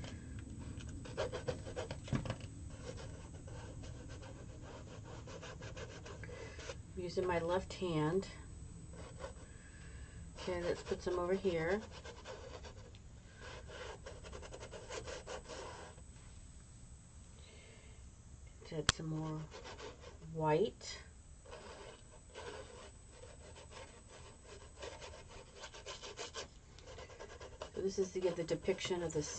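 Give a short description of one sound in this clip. A brush scrapes and dabs across canvas.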